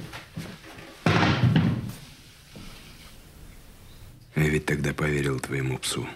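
A middle-aged man speaks seriously close by.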